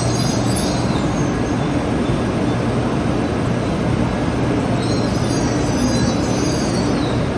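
A train rolls slowly past with a steady low rumble.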